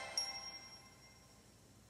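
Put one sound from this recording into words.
A small device speaker plays a short, tinny startup jingle.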